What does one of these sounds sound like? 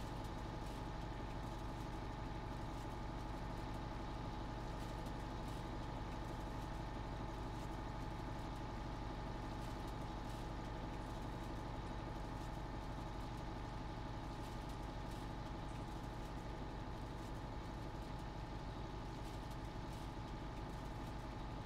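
A hay tedder rattles as it turns.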